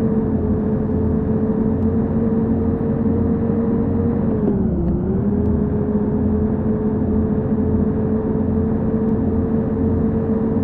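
Tyres roll on a highway.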